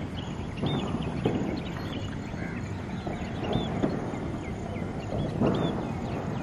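Small birds chirp with short, high calls.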